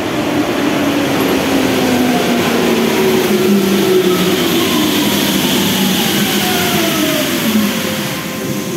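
A subway train rumbles loudly into an echoing underground station.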